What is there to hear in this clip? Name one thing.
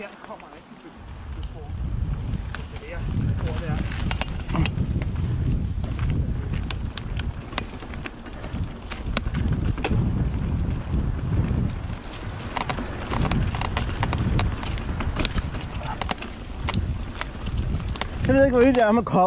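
Bicycle tyres rumble and rattle over a rough, stony trail.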